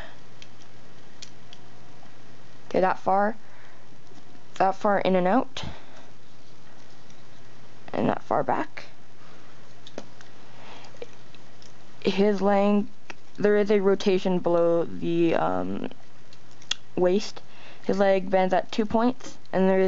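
Plastic parts click and rattle as they are handled.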